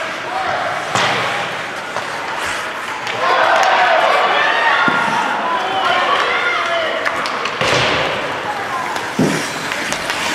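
A hockey stick slaps a puck with a sharp crack, echoing in a large hall.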